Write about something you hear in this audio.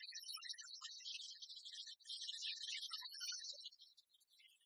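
A victory fanfare plays loudly from a game.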